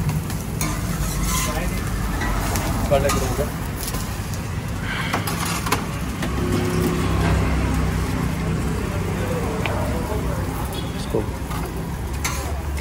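A metal spatula scrapes and taps on a hot griddle.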